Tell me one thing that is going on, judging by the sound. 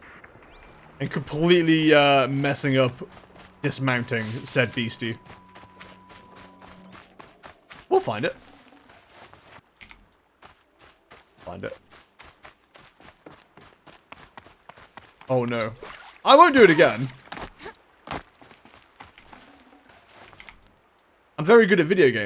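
A man talks casually and with animation into a close microphone.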